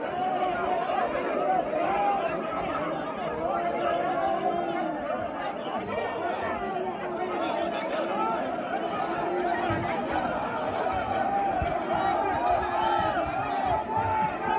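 A large crowd of men chants and shouts loudly together outdoors.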